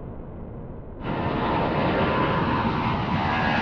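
Several jet engines roar loudly overhead.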